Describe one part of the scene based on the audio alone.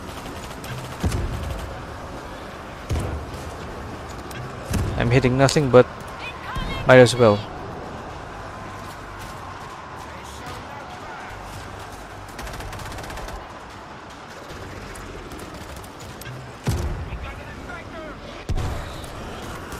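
Gunshots fire in bursts.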